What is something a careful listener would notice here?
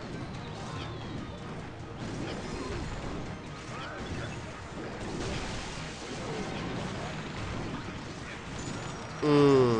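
Cartoonish battle sound effects clash and thump.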